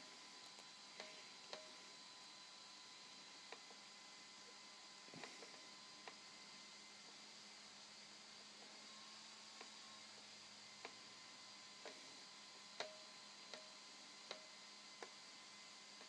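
A toy truck's electronics click softly now and then as its lights switch.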